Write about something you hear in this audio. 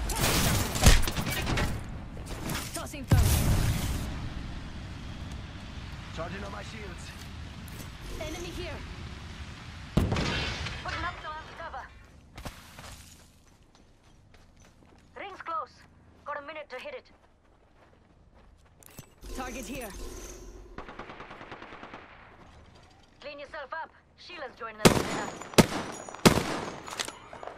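Rapid gunfire rattles out in short, loud bursts.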